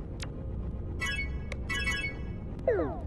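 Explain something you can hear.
Short electronic blips sound as a menu opens.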